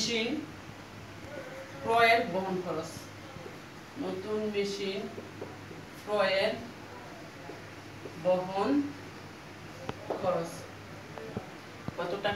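A young woman speaks calmly in short phrases nearby.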